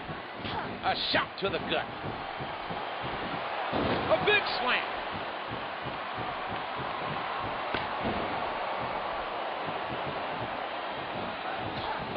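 A crowd cheers steadily in a large arena.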